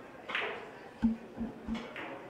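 A cue strikes a billiard ball.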